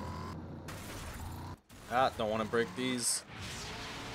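Tyres skid and crunch on gravel.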